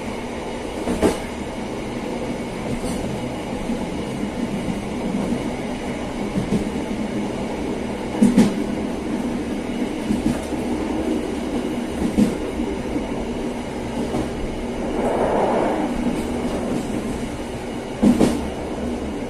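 Train wheels clack over rail joints now and then.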